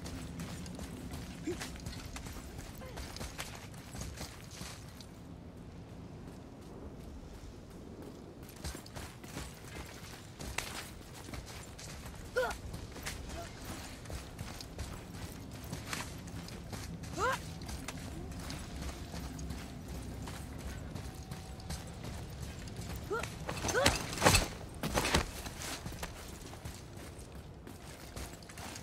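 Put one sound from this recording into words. Footsteps crunch on gravel and dry ground.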